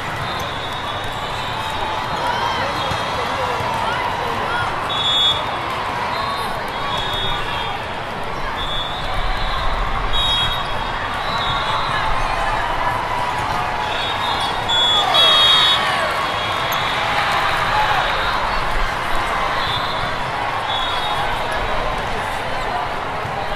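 A large crowd murmurs and chatters, echoing through a large hall.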